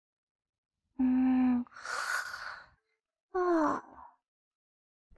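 A small animal lets out soft, sleepy squeaks.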